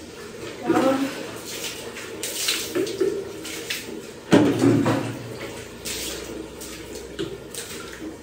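A cloth rubs and scrubs against a tiled wall.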